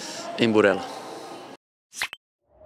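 A man speaks calmly into a microphone close by.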